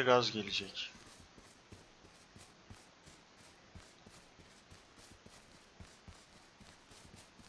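Footsteps swish steadily through grass.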